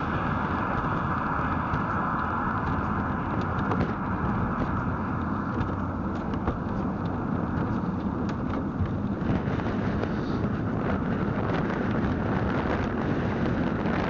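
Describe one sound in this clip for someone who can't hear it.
Wind buffets the microphone with a low rumble.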